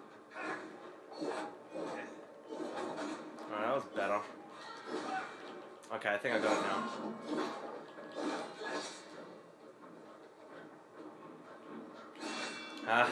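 Swords clash and slash in a video game fight, heard through a television's speakers in a small room.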